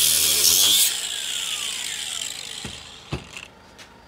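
An angle grinder whines loudly, then spins down.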